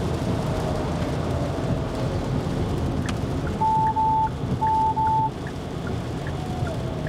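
A car engine and tyres rumble steadily on a wet road.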